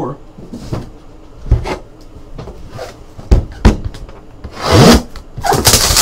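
Cardboard boxes knock and slide on a table.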